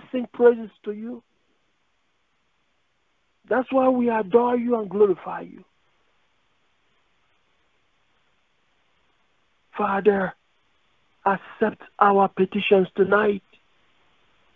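A man speaks in short phrases with long pauses, close to the microphone.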